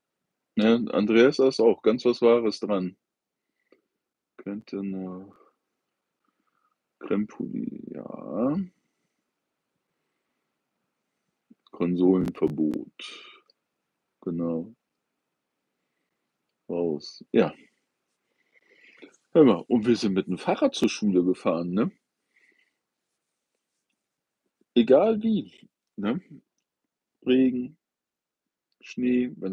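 An older man speaks calmly close to the microphone, in short bursts with pauses.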